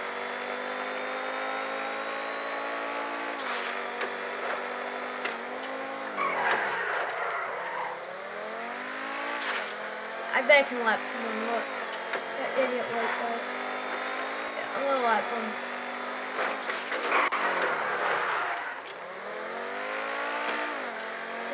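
A sports car engine roars steadily, its pitch rising and falling with gear shifts.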